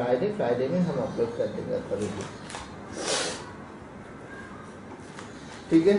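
Newspaper rustles as hands smooth it flat.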